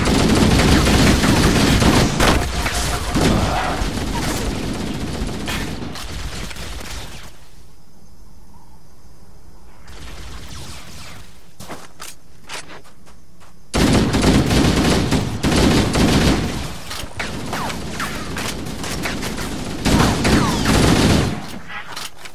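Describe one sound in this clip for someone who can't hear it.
A rifle fires rapid, loud bursts.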